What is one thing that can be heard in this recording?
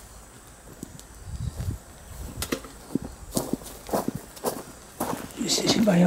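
Footsteps crunch on dry ground nearby.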